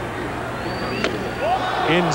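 A baseball smacks sharply off a bat once.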